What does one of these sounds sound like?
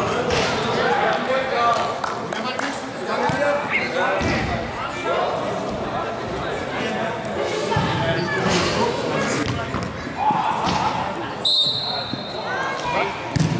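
Men shout to each other in a large echoing indoor hall.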